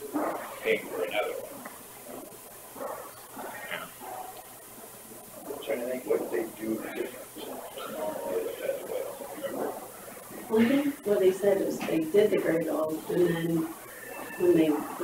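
A middle-aged man speaks calmly in a room, heard from a distance.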